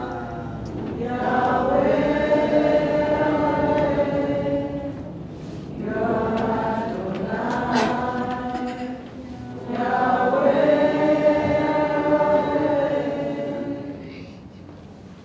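A woman sings through a loudspeaker in a large room.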